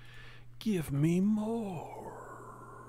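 A man exclaims loudly in a drawn-out voice, close to a microphone.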